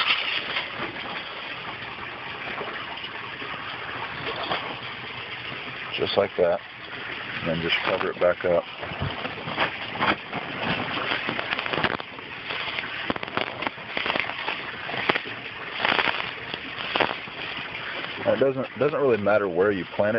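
Small pebbles clatter and rattle as a hand sifts through them.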